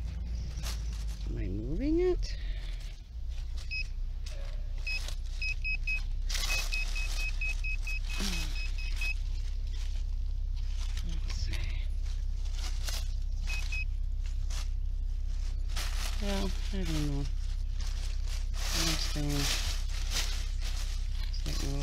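Dry leaves and twigs crunch and rustle.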